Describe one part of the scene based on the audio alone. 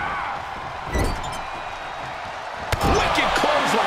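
Heavy thuds of bodies hitting a wrestling ring mat boom out.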